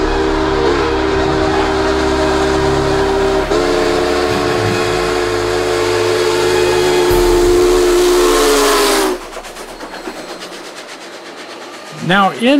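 A steam train rumbles and chugs past on the tracks.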